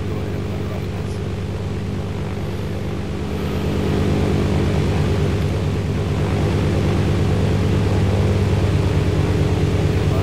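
A propeller plane's engine drones steadily, growing slightly louder.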